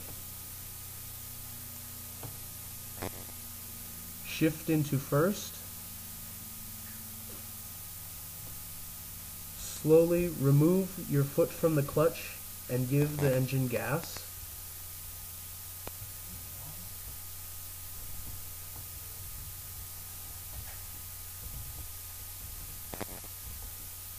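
A car engine idles with a low, steady hum.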